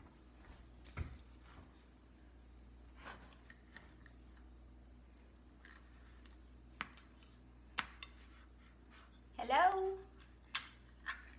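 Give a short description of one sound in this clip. A jar lid clicks and knocks as it is twisted.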